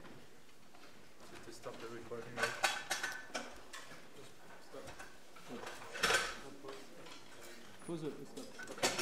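People murmur and shuffle about in a large hall.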